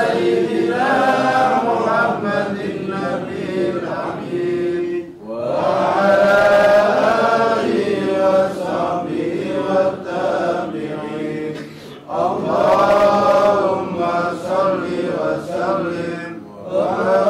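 A man chants melodically into a microphone, with long drawn-out phrases and brief pauses for breath.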